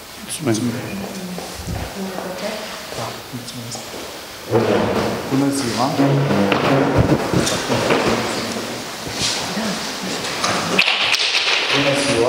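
Several people murmur and talk in a slightly echoing room.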